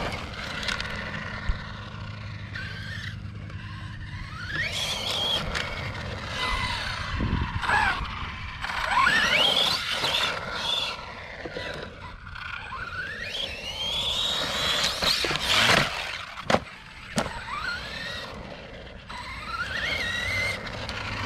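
A small electric motor whines, rising and falling in pitch as it revs up and down.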